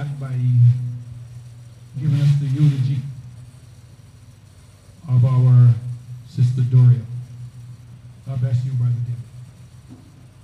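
An elderly man speaks slowly into a microphone, heard through loudspeakers in an echoing hall.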